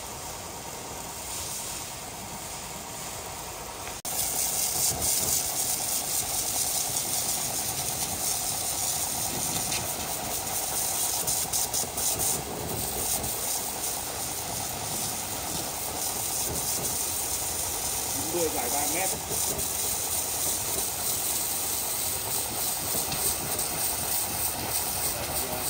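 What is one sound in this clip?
A pressure washer sprays a steady, hissing jet of water onto wood.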